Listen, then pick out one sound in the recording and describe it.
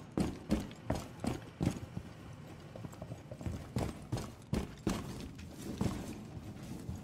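Heavy footsteps thud quickly across a wooden floor.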